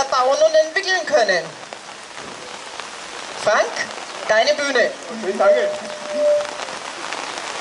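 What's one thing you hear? A woman speaks through a microphone over loudspeakers outdoors.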